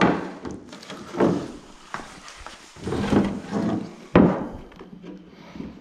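A hand taps and rubs a hard plastic panel.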